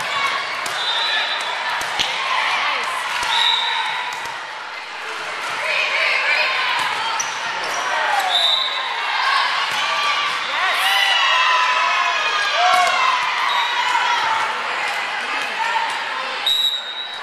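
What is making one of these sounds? Teenage girls call out and shout to each other in an echoing gym.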